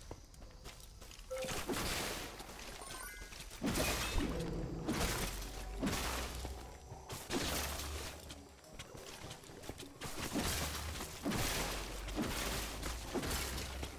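Video game combat sounds clash and burst in quick succession.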